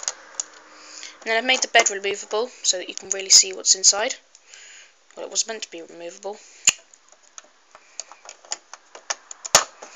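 Plastic toy bricks click and clatter as they are handled.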